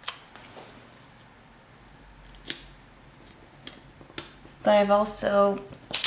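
A sticker peels from its backing and is pressed onto paper.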